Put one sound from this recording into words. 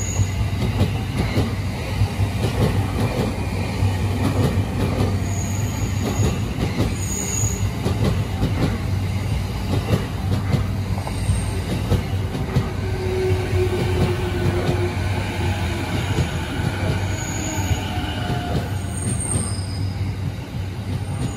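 An electric commuter train hums while standing at a platform.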